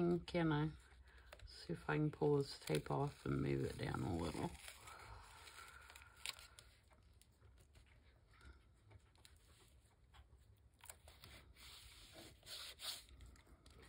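Paper rustles and crinkles as it is folded by hand.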